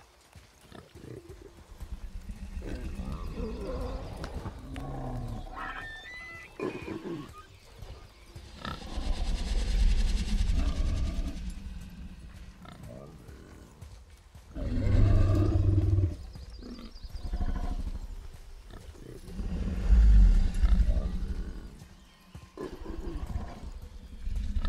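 A boar grunts and snorts.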